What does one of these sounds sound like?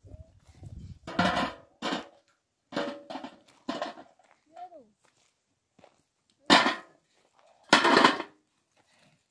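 Stones clatter into a metal bowl.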